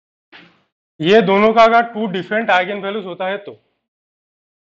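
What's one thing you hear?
A young man speaks clearly and calmly, close by.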